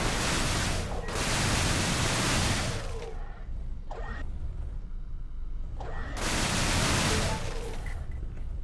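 A spaceship engine roars in bursts.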